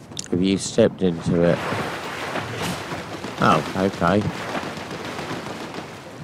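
Water splashes as a game character wades and swims.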